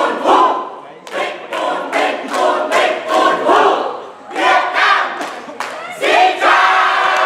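Hands clap sharply in rhythm.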